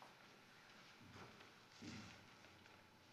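A man speaks quietly at a distance.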